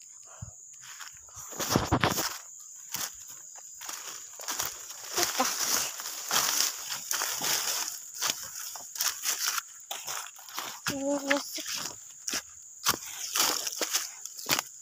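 Dry leaves rustle and crunch underfoot as someone walks through undergrowth.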